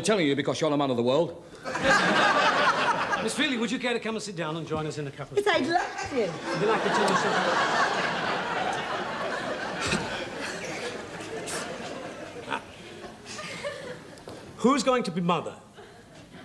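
A middle-aged man speaks loudly and with animation, close by.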